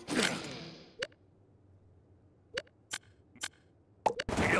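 Menu clicks sound as options change.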